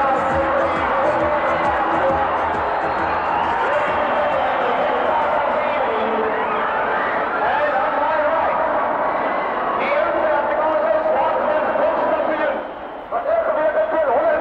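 A large crowd murmurs and cheers in a big echoing hall.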